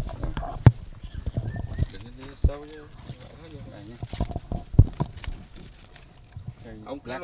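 Dry leaves rustle and crackle as hands move through them.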